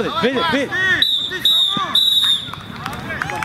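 A referee's whistle blows in short, sharp blasts.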